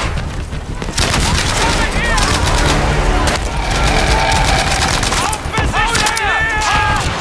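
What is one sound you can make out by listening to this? A machine gun fires in rapid bursts nearby.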